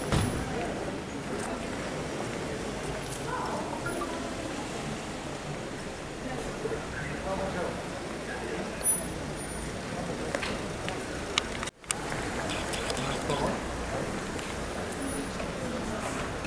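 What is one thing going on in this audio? Car tyres roll slowly over paving stones.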